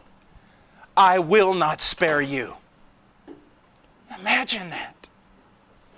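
A man speaks forcefully through a microphone, with pauses between phrases.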